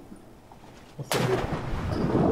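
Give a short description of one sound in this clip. A body splashes into water.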